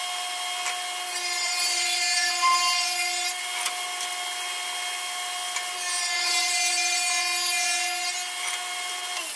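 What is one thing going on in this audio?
A table saw blade cuts through wood with a rising rasp.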